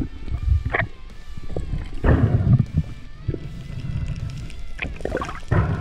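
Water rushes and gurgles, heard muffled underwater.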